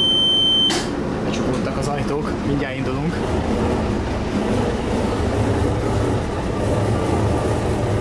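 A train rumbles along the tracks as it moves off.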